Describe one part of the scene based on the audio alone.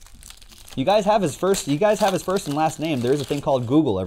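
Card packs crinkle as they are handled.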